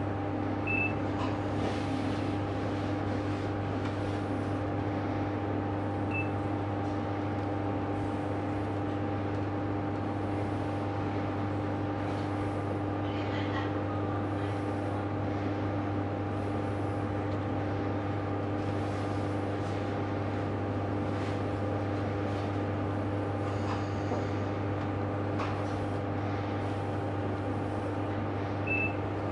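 A train hums and rumbles steadily while standing still.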